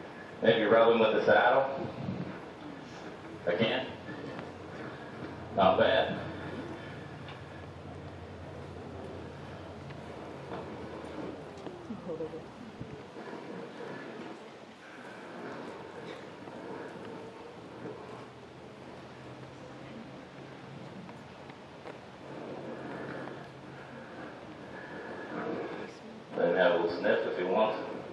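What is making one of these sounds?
A man speaks calmly and close by, in a large echoing hall.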